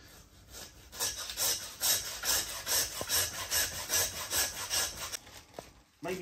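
A hand saw rasps back and forth through meat and bone in quick, even strokes.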